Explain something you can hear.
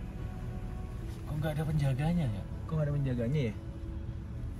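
A young man talks in a car.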